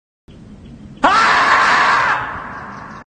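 A marmot lets out a long, loud scream.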